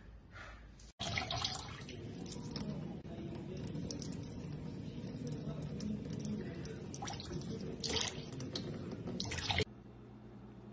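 Water trickles from a tap into a metal bowl.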